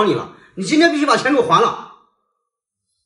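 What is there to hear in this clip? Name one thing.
A young man speaks loudly and angrily, close by.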